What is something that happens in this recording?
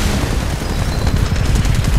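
A large robot's machinery rumbles and clanks close by.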